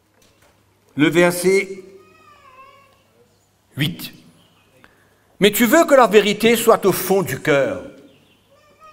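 An older man speaks slowly and earnestly into a microphone in a reverberant room, with long pauses.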